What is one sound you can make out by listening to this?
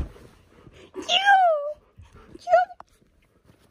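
A young girl laughs and squeals excitedly.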